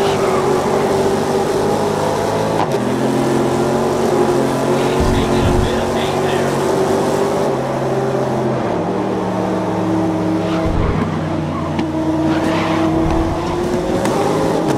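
A race car engine roars loudly, its pitch rising and falling as it shifts gears.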